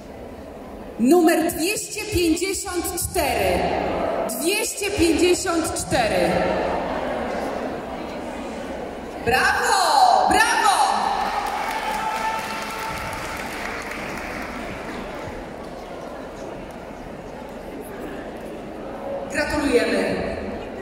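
A woman sings into a microphone with animation in a large echoing hall.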